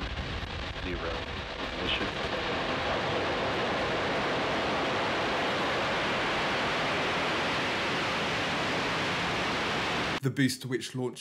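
A rocket engine roars loudly and steadily as a rocket lifts off.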